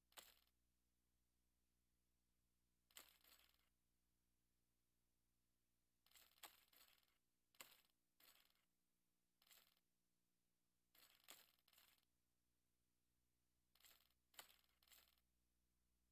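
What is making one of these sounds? Heavy tiles slide and clunk into place in short bursts.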